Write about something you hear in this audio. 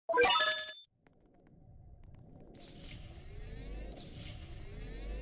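Magical blasts zap and crackle repeatedly.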